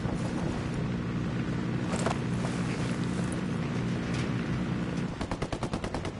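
A helicopter engine idles with a steady low whir.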